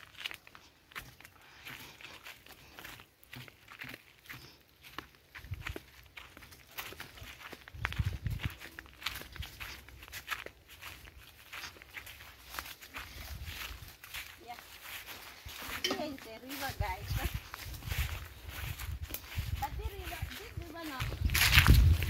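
Footsteps crunch on dry leaves and grass outdoors.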